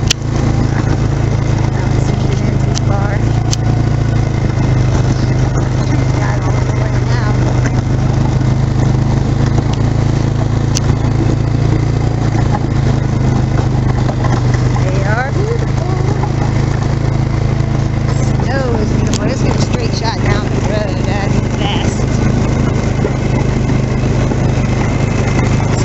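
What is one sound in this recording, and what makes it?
A snowmobile engine drones steadily close by.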